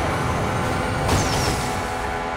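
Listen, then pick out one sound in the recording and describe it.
A car slams into a barrier with a scraping crash.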